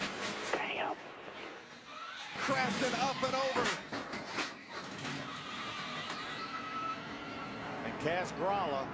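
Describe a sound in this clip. Race car engines roar at high speed.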